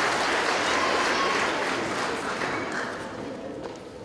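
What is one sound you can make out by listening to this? A large choir of mixed voices sings in a large echoing hall and fades away.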